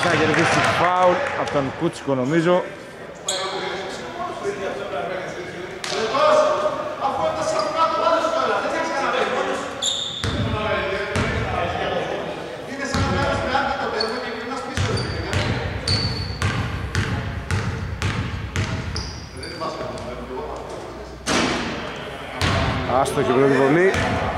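Basketball players shout to each other in a large echoing hall.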